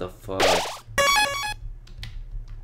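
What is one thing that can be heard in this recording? A bright electronic chime rings out briefly.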